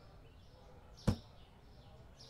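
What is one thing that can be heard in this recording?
A metal shelf is set down with a single sharp clank.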